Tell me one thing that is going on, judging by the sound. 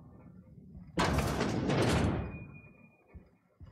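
A heavy metal door slides open with a loud whoosh.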